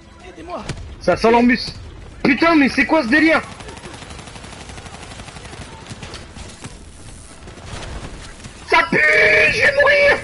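A young man talks loudly and with animation close to a microphone.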